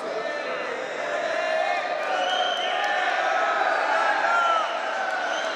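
A crowd of spectators chatters loudly in an echoing hall.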